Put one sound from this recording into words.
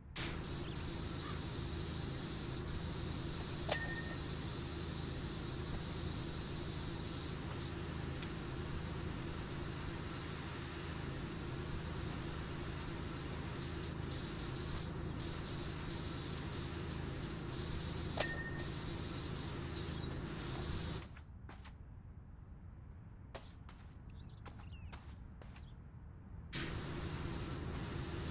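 A pressure washer sprays a steady, hissing jet of water.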